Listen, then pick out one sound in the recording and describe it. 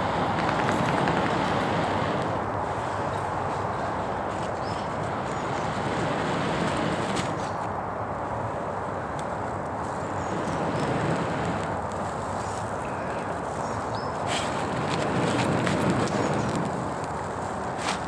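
A man blows in long, hard breaths.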